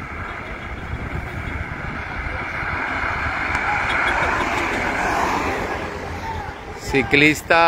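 Cars drive past on a road and fade away.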